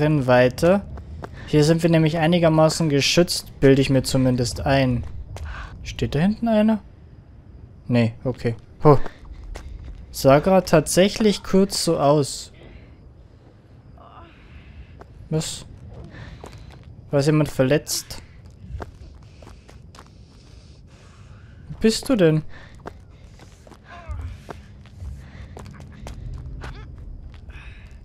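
Footsteps run over gravel and rubble.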